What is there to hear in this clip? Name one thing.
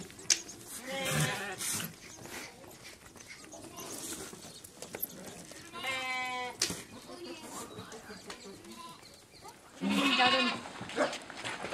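Sheep bleat nearby.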